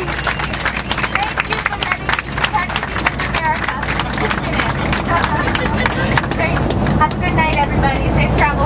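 People in a crowd whoop and shout with excitement.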